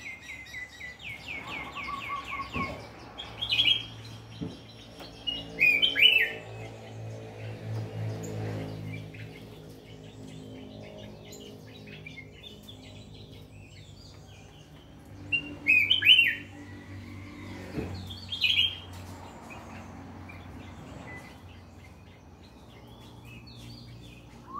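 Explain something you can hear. A small caged bird sings loud, sharp chirps and trills in bursts.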